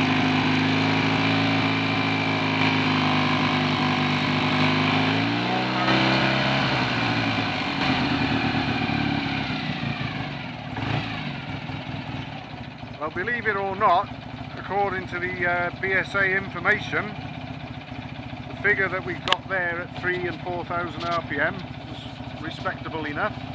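A motorcycle engine runs fast, then drops to a steady idle.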